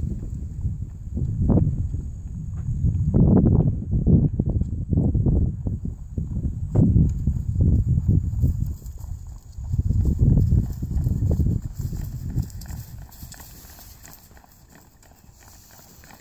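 A horse's hooves thud on grass at a canter.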